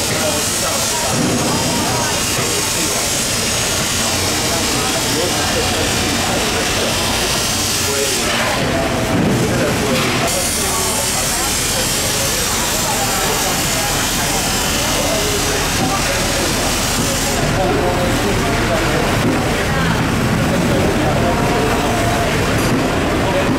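Men talk nearby in the background.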